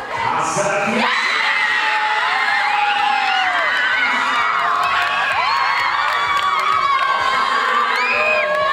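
A crowd of young people cheers and screams excitedly.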